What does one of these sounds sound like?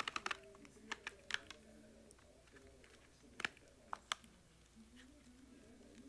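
Cardboard tears as a box is opened by hand.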